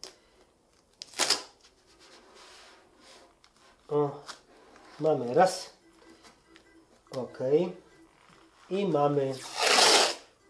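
Masking tape rips off a roll.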